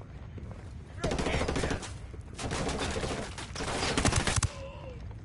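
A rifle fires in rapid bursts at close range.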